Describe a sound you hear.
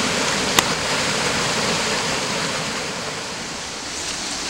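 A small waterfall splashes and rushes steadily over rocks.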